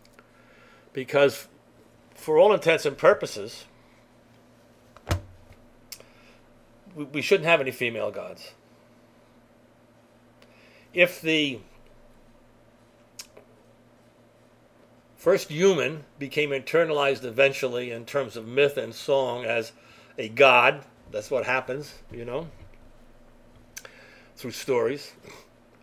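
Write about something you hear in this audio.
An elderly man speaks calmly and thoughtfully, with pauses between phrases.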